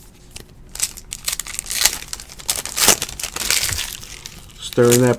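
A foil wrapper crinkles and tears as hands open a pack.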